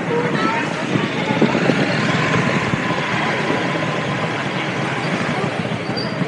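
A motorbike engine hums as it passes close by.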